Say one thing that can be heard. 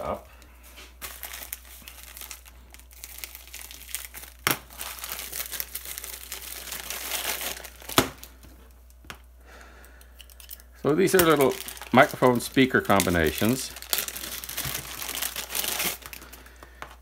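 A plastic wrapper crinkles and rustles as it is handled.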